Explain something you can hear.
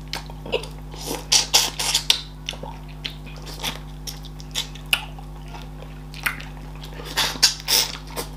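Fingers squelch through soft dough and thick soup.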